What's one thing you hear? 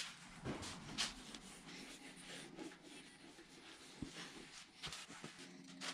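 A cloth rubs and wipes over metal.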